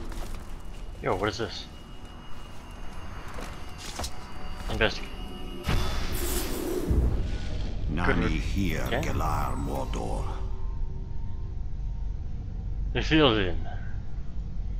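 An eerie, shimmering whoosh swells and fades several times.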